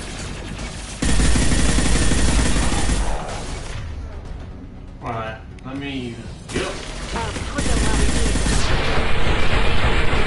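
Rapid gunfire and blasts roar loudly.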